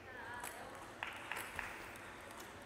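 A table tennis ball bounces a few times with light, sharp taps.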